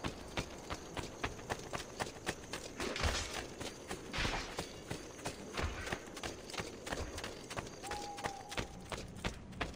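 Quick footsteps run steadily on stone.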